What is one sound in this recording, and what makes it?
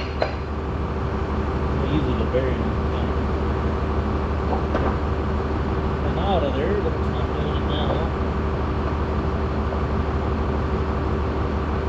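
Metal parts clink and scrape.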